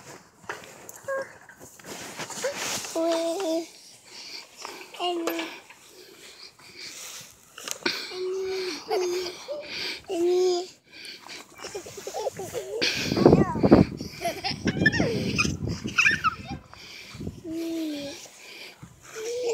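A swing's chains squeak as the swing moves back and forth.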